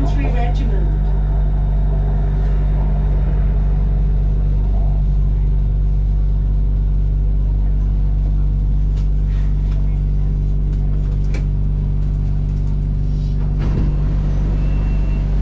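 A train's motor hums steadily in a low drone.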